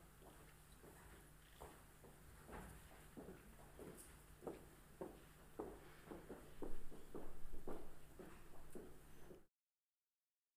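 Footsteps clack on a hard floor in a large echoing hall.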